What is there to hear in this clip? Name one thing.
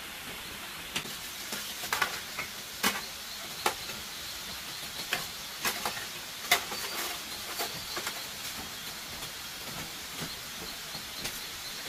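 Small bamboo pieces click and tap against a wooden floor.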